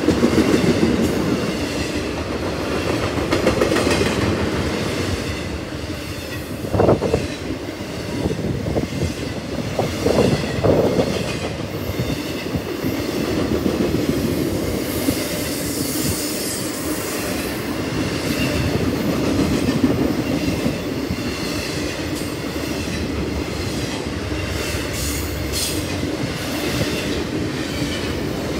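A long freight train rumbles steadily past close by.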